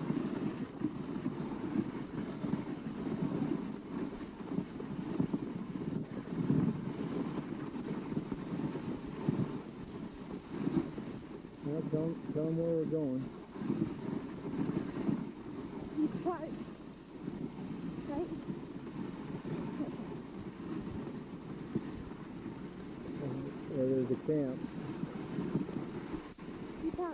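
Sled runners hiss over packed snow.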